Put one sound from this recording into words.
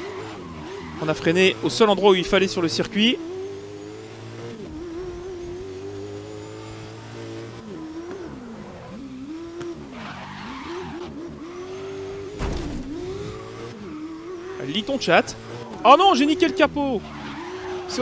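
Tyres screech on asphalt.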